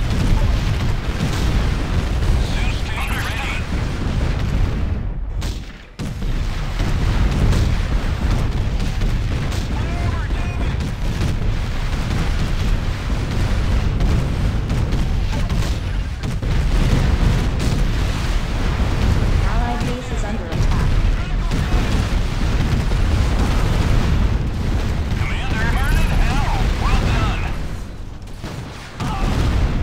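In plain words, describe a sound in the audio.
Explosions boom and rumble in a heavy battle.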